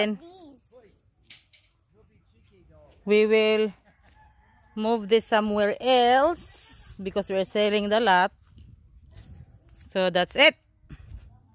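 A child talks in a high voice close by.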